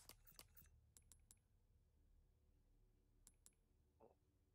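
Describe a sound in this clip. Short electronic menu clicks sound.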